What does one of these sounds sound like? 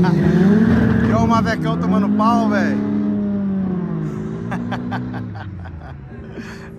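A car engine revs loudly, rising and falling in pitch, then fades.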